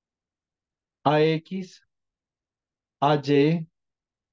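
A woman speaks briefly over an online call, in short phrases.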